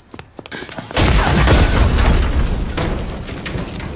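A car explodes with a loud blast.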